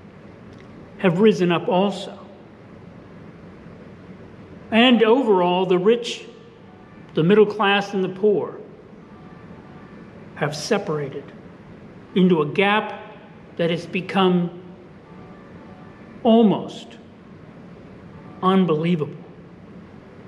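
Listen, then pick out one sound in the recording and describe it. An elderly man speaks calmly and slowly into a microphone, in short phrases with pauses.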